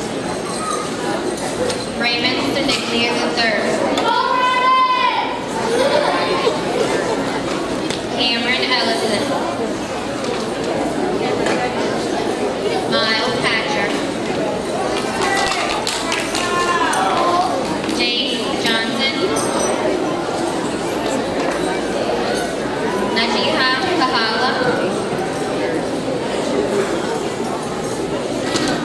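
A woman reads out names in an echoing hall.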